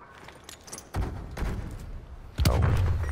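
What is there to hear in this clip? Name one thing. A smoke grenade bursts and hisses.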